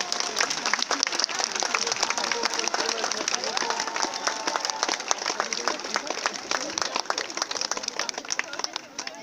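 A crowd chatters nearby outdoors.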